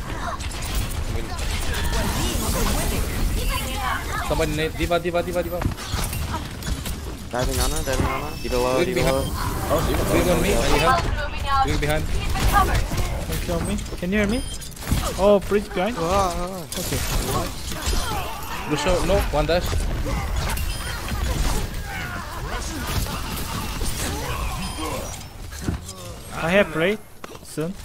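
Rapid gunshots and blasts crack in a game's fighting.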